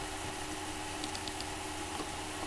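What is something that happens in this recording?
A computer mouse clicks a few times in quick succession.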